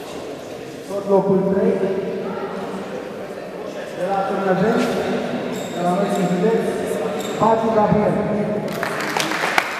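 A man reads out over a loudspeaker in a large echoing hall.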